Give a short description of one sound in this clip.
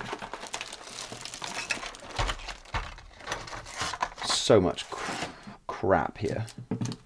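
A man rummages through items on a shelf, with light knocks and rustles.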